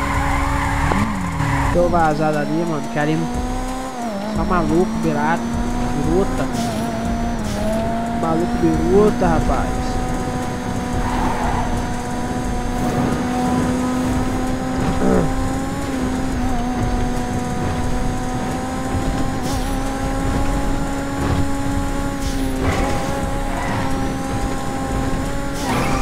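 A car engine hums steadily, rising and falling slightly in pitch.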